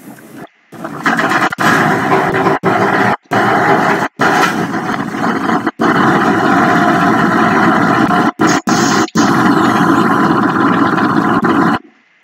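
A diesel shunting locomotive engine runs under power.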